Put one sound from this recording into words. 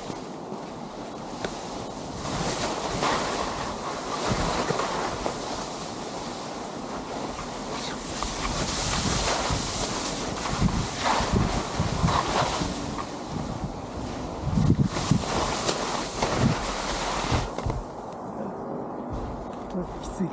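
Skis scrape and hiss over crusty snow.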